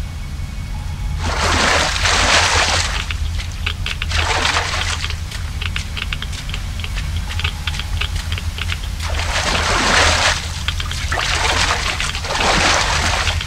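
Footsteps splash slowly through shallow water.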